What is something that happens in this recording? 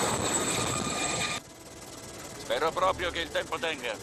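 A helicopter crashes into the ground with a heavy thud.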